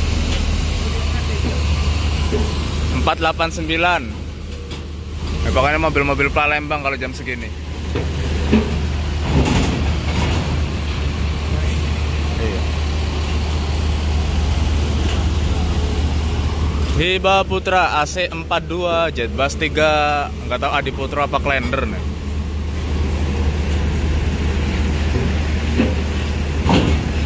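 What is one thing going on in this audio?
Bus tyres clank over a metal ramp.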